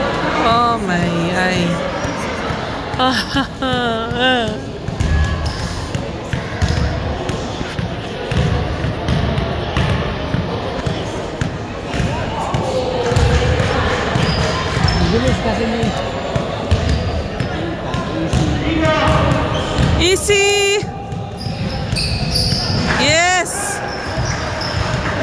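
Basketballs bounce on a wooden floor in a large echoing gym.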